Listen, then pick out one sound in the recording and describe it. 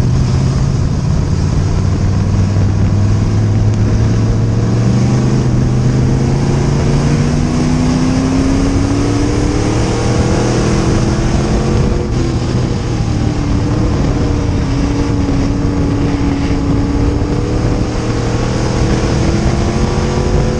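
Tyres rumble and scrabble over a dirt track.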